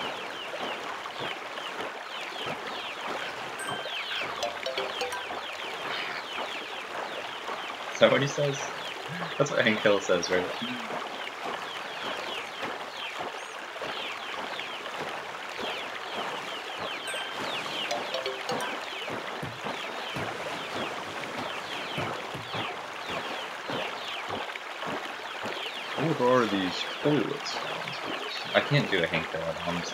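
Water splashes steadily as a kayak paddle strokes through it.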